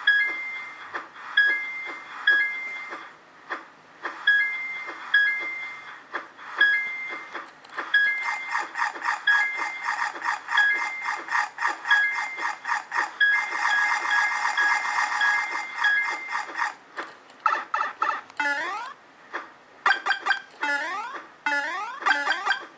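A phone game makes quick whooshing flap sounds over and over.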